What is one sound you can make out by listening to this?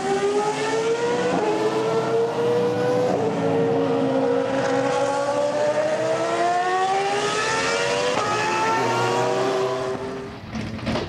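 Racing car engines roar loudly, their pitch rising and falling through the gears.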